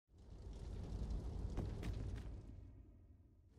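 A torch fire crackles and roars softly.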